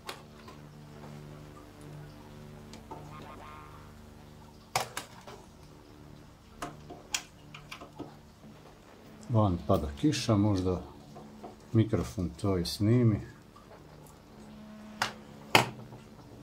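A screwdriver turns screws with small metallic clicks and scrapes.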